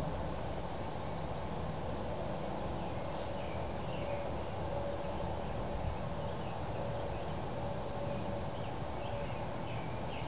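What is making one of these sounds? Footsteps fall softly on grass.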